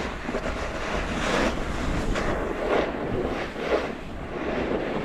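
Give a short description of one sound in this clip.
Skis scrape and hiss over hard-packed snow in swelling sweeps.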